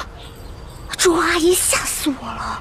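A young woman speaks with agitation up close.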